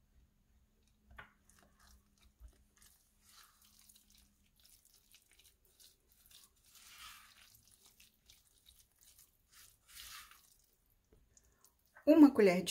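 A spatula scrapes and stirs thick batter in a glass bowl.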